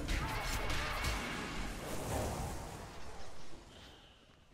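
Magic spell effects whoosh and crackle loudly.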